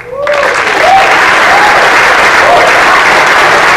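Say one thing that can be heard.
People in an audience whoop and cheer.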